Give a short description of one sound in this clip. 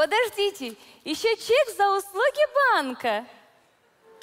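A woman speaks in a high, expressive voice through a microphone.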